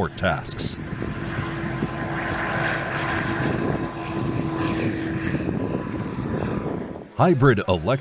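A small propeller plane drones steadily as it takes off and climbs.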